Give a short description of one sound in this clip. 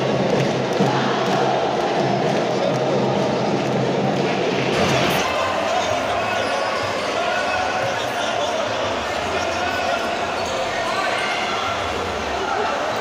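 A large crowd cheers and chatters loudly in a big echoing hall.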